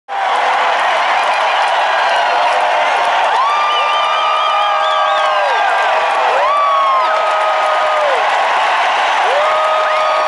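An electric guitar plays long, sustained notes.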